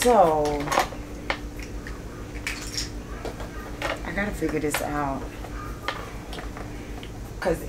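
Small items rattle and click inside a case.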